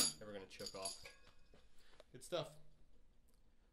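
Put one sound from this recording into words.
A cymbal is tapped and rings briefly.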